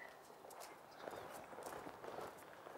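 Footsteps shuffle on stone steps.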